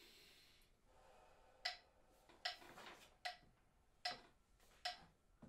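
A piano plays short, separate notes.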